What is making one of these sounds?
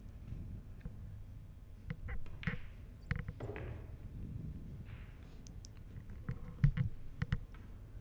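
Billiard balls click sharply against each other.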